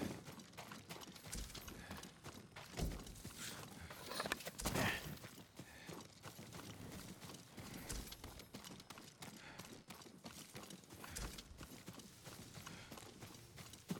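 Armour rattles and clinks with each step.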